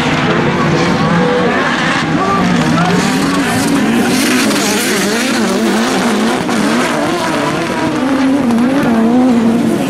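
Several racing car engines roar and rev loudly, rising and falling in pitch.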